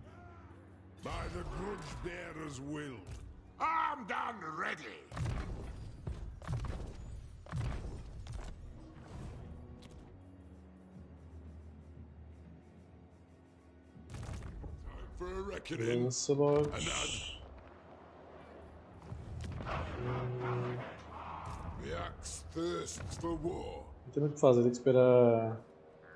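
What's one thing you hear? A young man talks with animation close to a microphone, pausing now and then.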